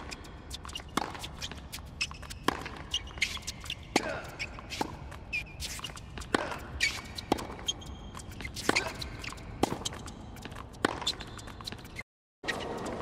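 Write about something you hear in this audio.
Tennis balls are struck back and forth with sharp pops of the racket.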